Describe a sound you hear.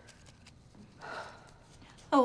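A young woman answers quietly, close by.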